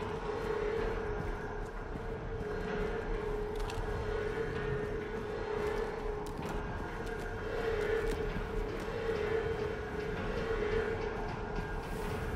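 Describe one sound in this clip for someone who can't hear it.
Footsteps tread slowly on a hard stone floor.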